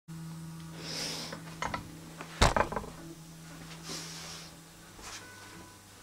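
An electric guitar hums faintly through an amplifier.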